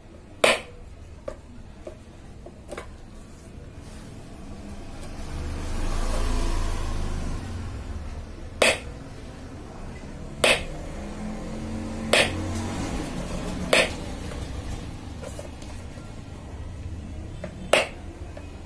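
A screwdriver taps and clicks against a circuit board.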